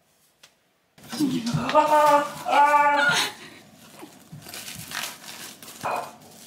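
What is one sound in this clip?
Plastic wrap crinkles as a rice ball is pushed into a fabric pouch.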